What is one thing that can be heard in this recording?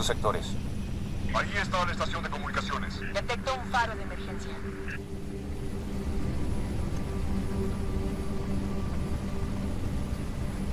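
An aircraft engine hums and rumbles steadily.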